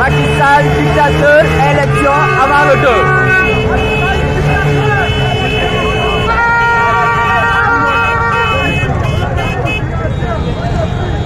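A crowd chatters and calls out outdoors.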